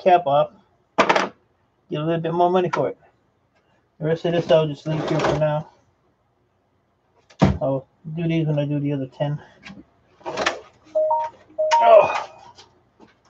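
Computer parts clatter and knock as they are handled.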